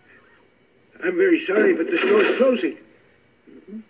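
A middle-aged man speaks loudly and tensely.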